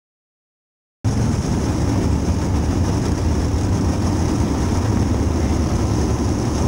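Wind rushes past a moving race car.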